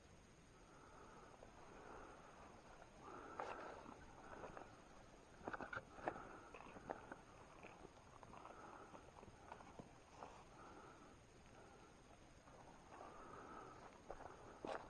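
Footsteps rustle and crunch through dry undergrowth.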